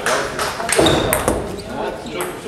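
A ping-pong ball clicks against paddles and the table.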